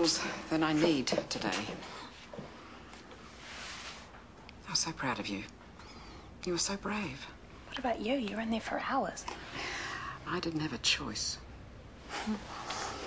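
An older woman speaks warmly and with emotion, close by.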